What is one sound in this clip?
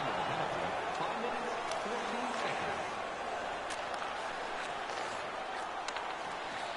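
An arena crowd murmurs in a large echoing hall.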